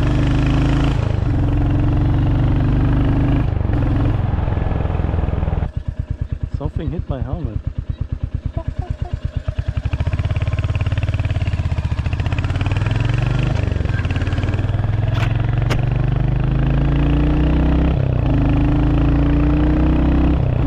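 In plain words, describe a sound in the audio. A motorcycle engine rumbles loudly and changes pitch as the rider shifts gears.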